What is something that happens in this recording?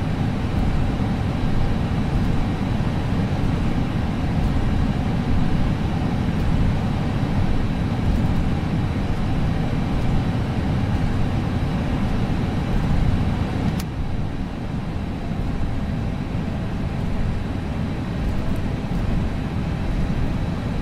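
A jet engine hums steadily as an airliner taxis.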